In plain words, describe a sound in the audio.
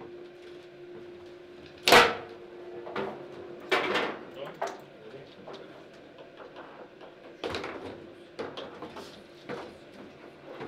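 Foosball rods clack and rattle as players slide and spin them.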